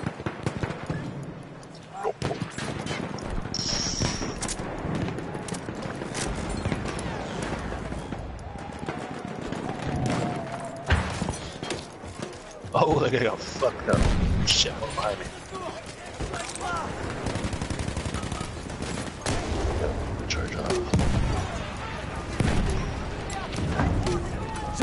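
Gunshots crack across a battlefield.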